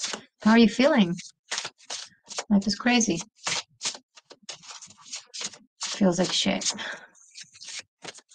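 A woman talks calmly and expressively close to a microphone.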